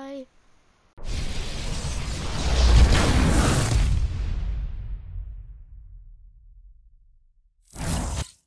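A powerful energy blast whooshes and roars, then slowly fades away.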